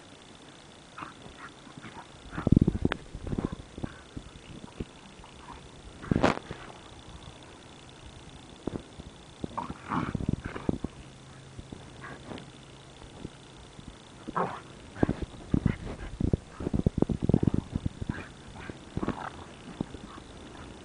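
Two dogs growl and snarl while playfully wrestling.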